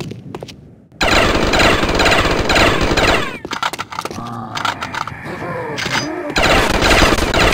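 Rapid gunfire blasts loudly in bursts.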